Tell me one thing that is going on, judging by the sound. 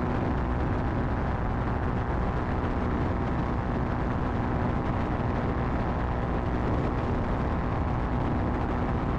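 Wind rushes past the open cockpit.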